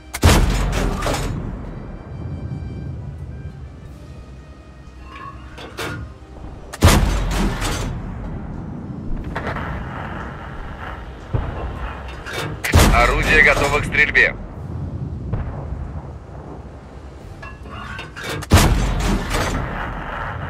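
A tank cannon fires with a loud, heavy boom that rumbles away.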